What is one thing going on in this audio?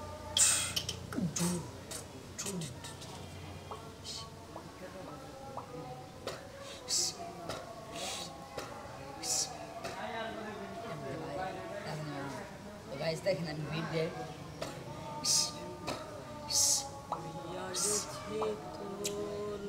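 Teenage boys talk calmly with each other nearby.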